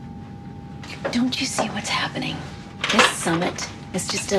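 A woman speaks urgently, close by.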